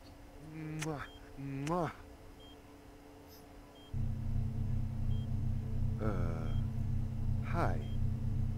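A young man mumbles softly, close by.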